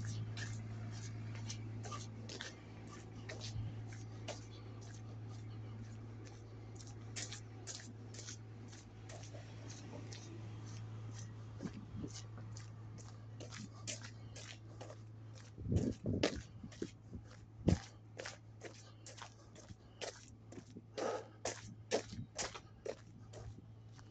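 Footsteps crunch on icy snow and pavement at a steady walking pace.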